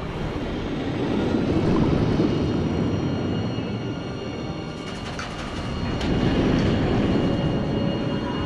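Water churns and bubbles underwater in a steady muffled rush.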